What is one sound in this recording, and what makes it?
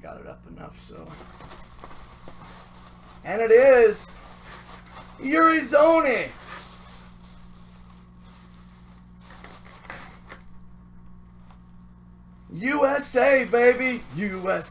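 Tissue paper and fabric rustle softly.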